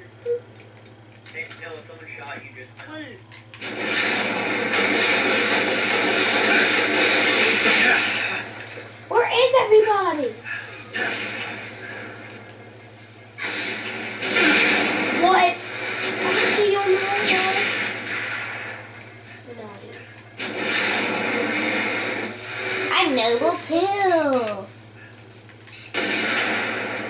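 Video game sound effects play loudly from a television speaker.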